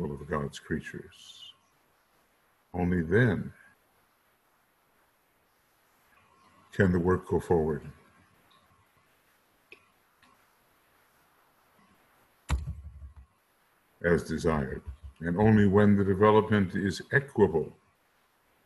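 An elderly man speaks calmly into a microphone, reading out in bursts with pauses.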